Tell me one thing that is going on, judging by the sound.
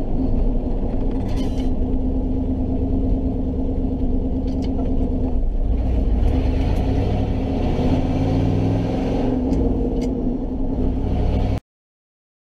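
A gear lever clunks as gears shift.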